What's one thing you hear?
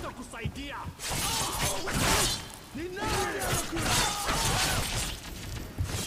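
Metal claws slash and clang.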